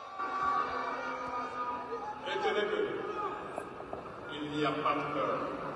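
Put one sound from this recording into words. A large crowd murmurs and cheers in the distance.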